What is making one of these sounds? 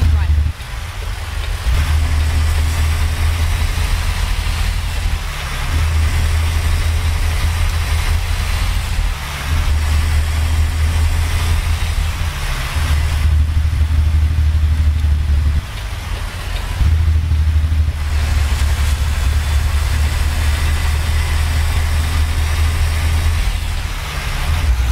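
A truck engine rumbles low and steady, swelling and easing as the truck drives.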